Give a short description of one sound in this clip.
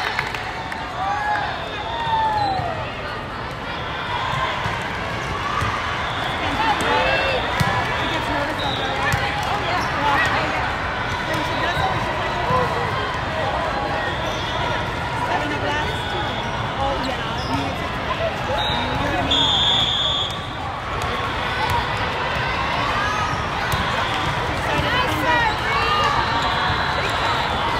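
A crowd of voices chatters and echoes throughout a large hall.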